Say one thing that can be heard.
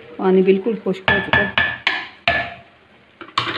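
A wooden spoon knocks sharply against a metal pot several times.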